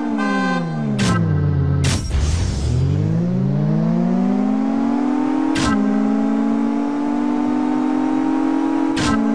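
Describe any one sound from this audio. A car engine roars as it accelerates, dipping briefly at each gear change.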